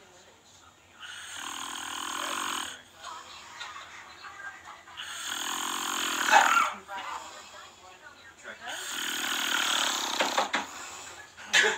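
A man snores loudly and heavily, close by.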